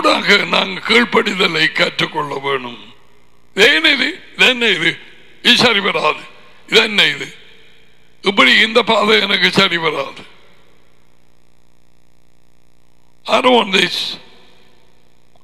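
An elderly man speaks calmly and clearly into a close headset microphone.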